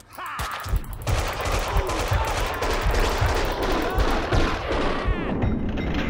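Pistol shots fire rapidly in an echoing room.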